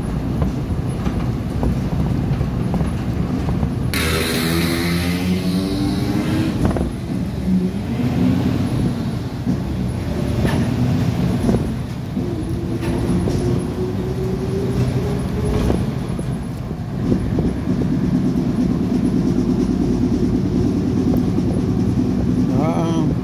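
A vehicle engine hums steadily as it drives along a road.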